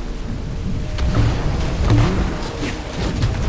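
A rocket launches with a whoosh and explodes.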